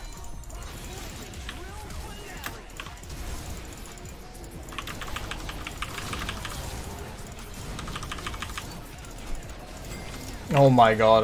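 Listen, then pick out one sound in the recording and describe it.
Spell effects crackle and clash in a fast fight.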